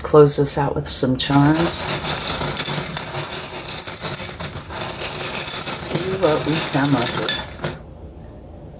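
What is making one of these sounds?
A hand rummages and rattles through small objects in a box.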